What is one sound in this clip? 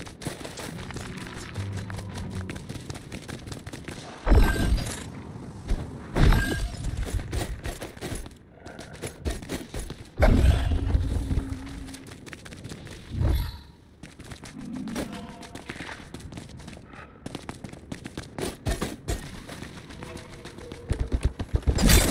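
Quick footsteps crunch over rough ground.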